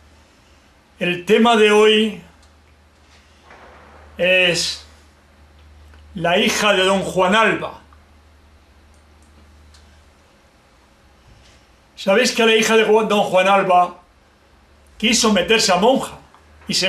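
An elderly man sings loudly and close by, in short bursts with pauses between.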